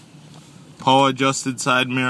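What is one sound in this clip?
A dashboard knob clicks as it is turned.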